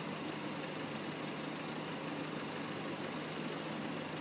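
Car engines idle nearby in a steady hum.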